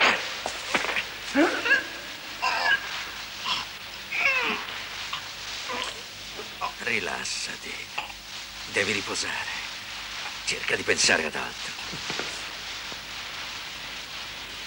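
Bodies scuffle and clothing rustles in a struggle.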